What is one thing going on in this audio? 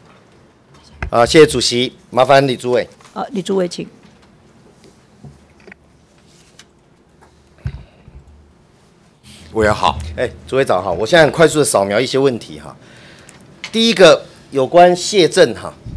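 A middle-aged man speaks formally into a microphone.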